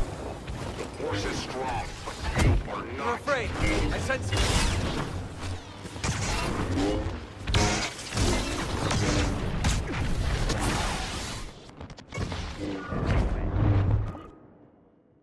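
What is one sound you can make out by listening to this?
Lightsabers hum and clash with sharp crackling strikes.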